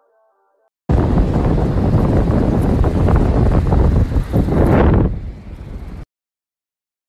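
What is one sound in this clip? Wind rumbles and buffets loudly against the microphone outdoors.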